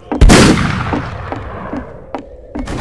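A pistol shot booms and rings out.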